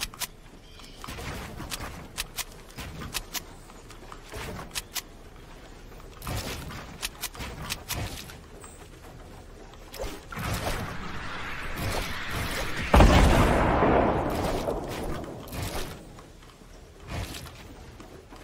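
Sharp clicks and knocks of wooden walls snapping into place come in quick bursts.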